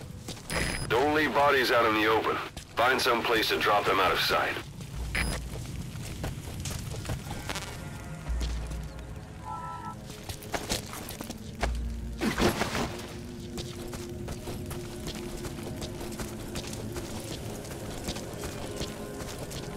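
Footsteps crunch quickly on dry gravel.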